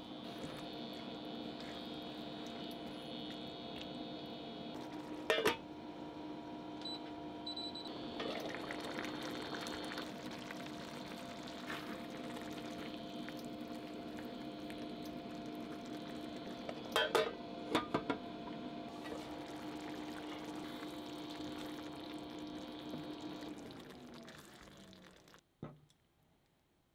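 A spatula stirs thick sauce in a pan.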